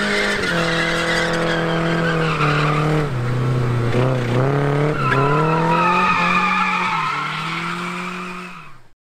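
Car tyres squeal on pavement.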